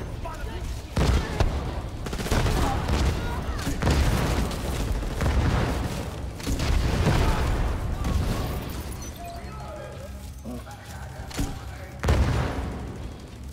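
Explosions boom and debris scatters.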